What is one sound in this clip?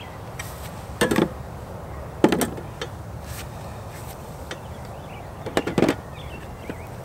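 Plastic tool parts clatter and knock against a case.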